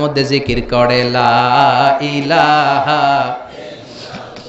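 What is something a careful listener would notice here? A man chants loudly in a long, sung, wavering voice through a microphone.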